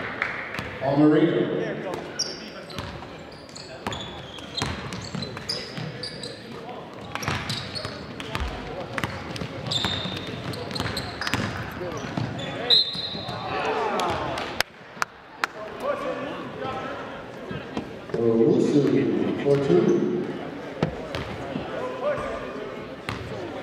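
Spectators shout and cheer in an echoing gym.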